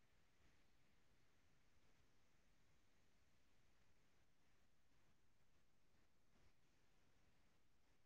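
Bodies scuff and thud softly on a padded mat.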